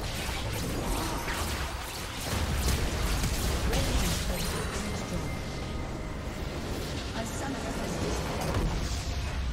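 Game combat effects clash and crackle rapidly.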